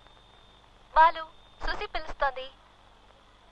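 A man speaks into a phone with emotion.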